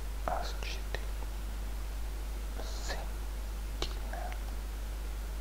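A man speaks briefly and calmly through a microphone.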